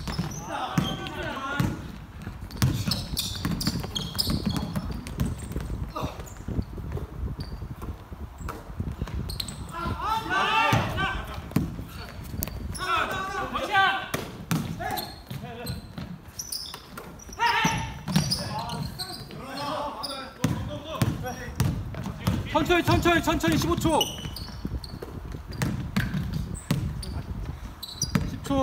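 A basketball bounces on a wooden gym floor, echoing in a large hall.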